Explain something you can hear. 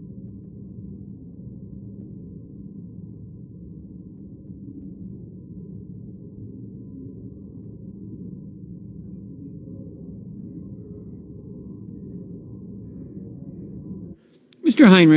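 People murmur quietly in a large hall.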